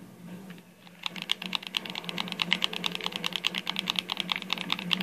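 Rapid gunfire rattles from a television speaker.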